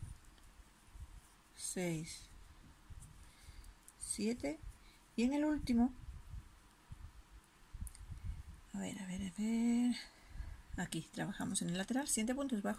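A crochet hook softly rustles and scrapes through yarn.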